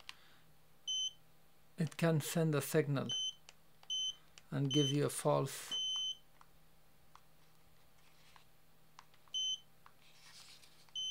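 An electronic buzzer gives short, high beeps, one at a time.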